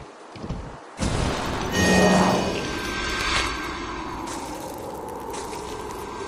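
A game spell bursts with a loud whoosh and crackle.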